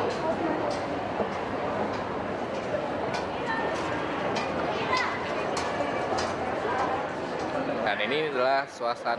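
A crowd chatters and murmurs all around in a large echoing hall.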